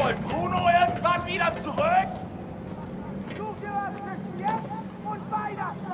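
Boots and hands clank on the rungs of a metal ladder.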